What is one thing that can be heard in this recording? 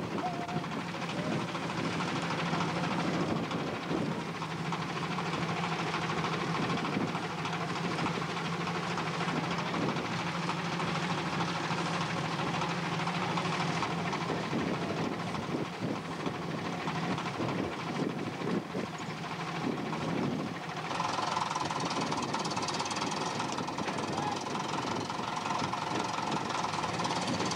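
Men talk casually outdoors nearby.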